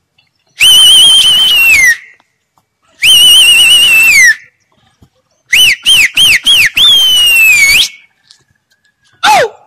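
Birds call overhead with loud, high, drawn-out whistles.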